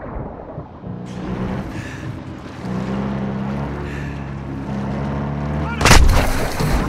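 Water splashes and laps at the surface.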